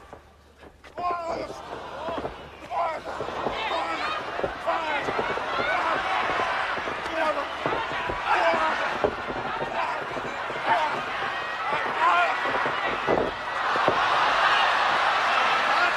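A crowd cheers and shouts, growing louder.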